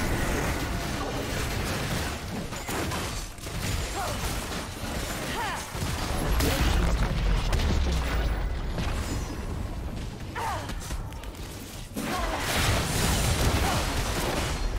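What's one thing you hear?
Magic blasts and weapon strikes crackle and clash in a fast battle.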